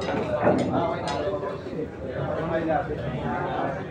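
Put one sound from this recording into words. Billiard balls clack together on a pool table.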